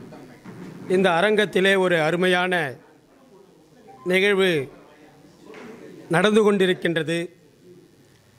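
A middle-aged man speaks forcefully into a microphone, heard through loudspeakers, in pauses between phrases.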